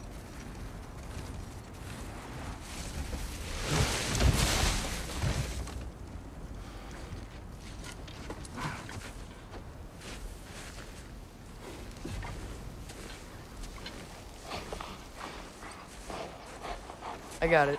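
Heavy footsteps crunch through snow.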